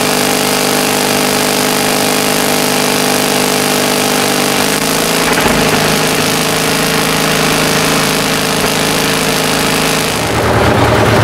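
An engine idles steadily with a low hum.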